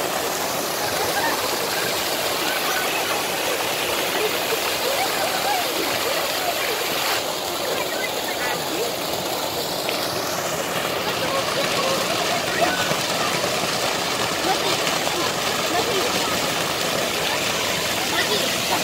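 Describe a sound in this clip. Many people chatter and shout nearby, outdoors.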